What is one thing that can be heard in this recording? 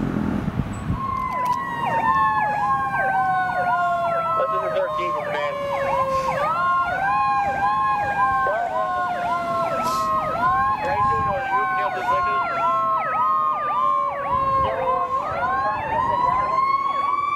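A fire engine's siren wails and yelps rapidly as it approaches.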